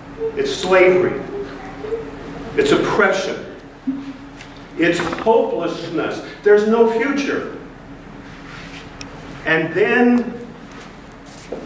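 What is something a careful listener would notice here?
An elderly man speaks with animation in a room with some echo.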